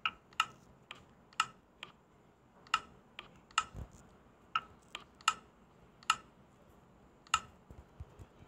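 Game menu buttons click in quick, sharp taps.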